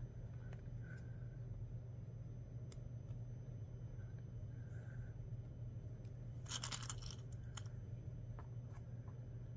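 Small wooden and plastic pieces click and tap as hands handle them.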